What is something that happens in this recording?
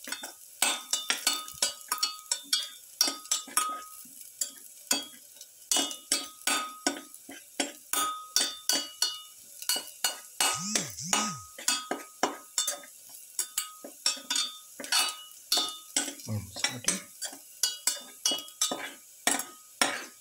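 A metal spatula scrapes and clanks rapidly against a steel wok.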